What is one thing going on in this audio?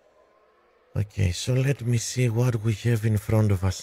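A man speaks into a microphone with animation, close up.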